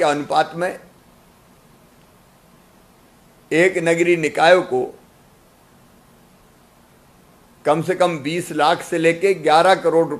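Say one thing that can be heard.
A middle-aged man speaks calmly into a close microphone, with long pauses.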